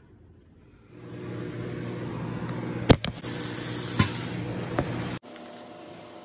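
Food sizzles in a pan.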